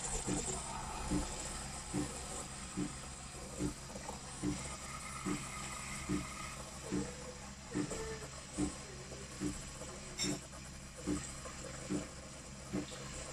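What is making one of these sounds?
A steam wand hisses and gurgles steadily in a jug of milk.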